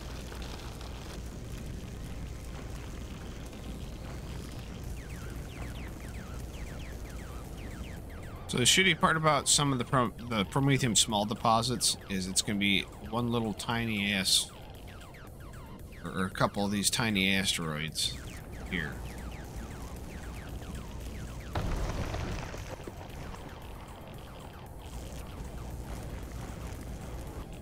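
A mining laser hums steadily.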